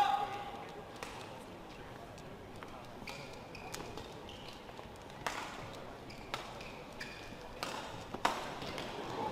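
Rackets strike a shuttlecock back and forth in a quick rally.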